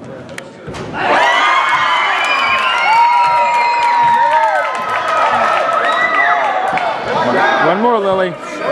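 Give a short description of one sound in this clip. Young girls shout and cheer loudly in an echoing gym.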